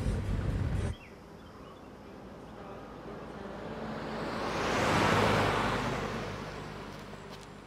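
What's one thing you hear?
A car drives past on a road, growing louder and then fading.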